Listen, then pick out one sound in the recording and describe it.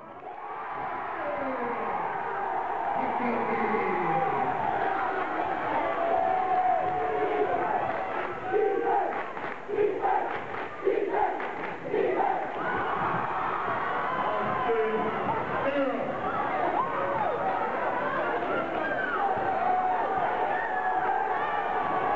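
A crowd cheers and shouts loudly in an echoing gym.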